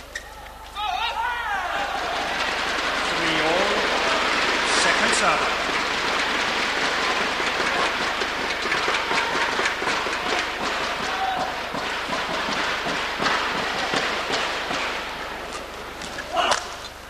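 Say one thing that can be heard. A large crowd cheers and applauds loudly in an echoing hall.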